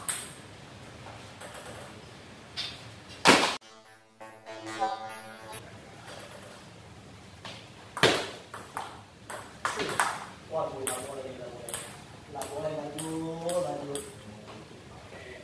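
A ping-pong ball clicks sharply back and forth on paddles and a table.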